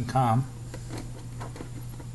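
A plastic lid is pressed onto a jar.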